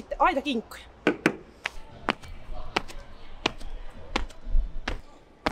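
Running footsteps thud sharply on a track.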